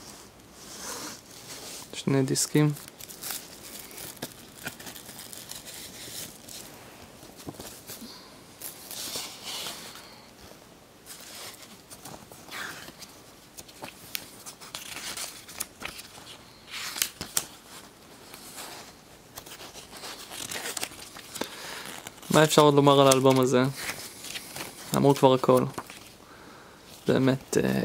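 Paper pages rustle and flip as a booklet is handled.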